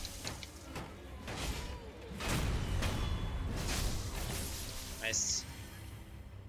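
Swords clash and ring in a quick fight.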